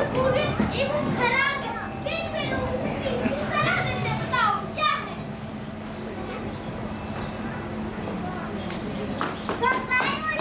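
A young boy speaks loudly in a reverberant hall.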